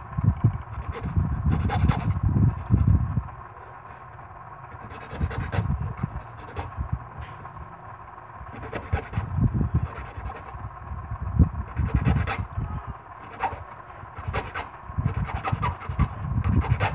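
A file rasps against metal in short bursts.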